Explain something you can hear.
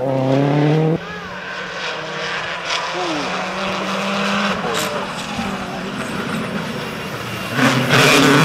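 A second rally car engine revs hard and pops as it approaches.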